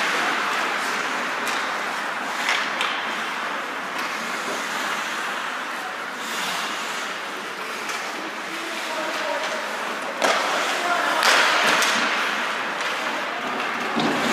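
Hockey sticks clack against the puck and each other.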